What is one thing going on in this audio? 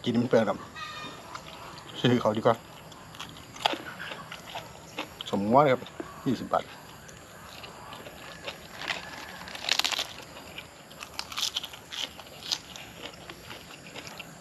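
A man chews food loudly with wet smacking sounds.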